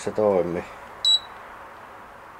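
An air conditioner beeps once.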